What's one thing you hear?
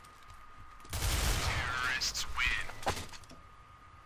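Gunshots crack out in a quick, loud burst close by.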